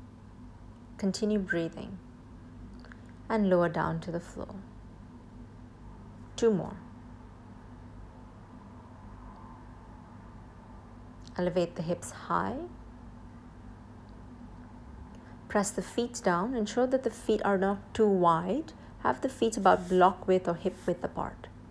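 A young woman speaks calmly, giving instructions.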